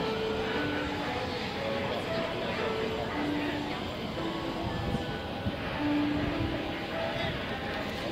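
A train rolls into the station and slows down.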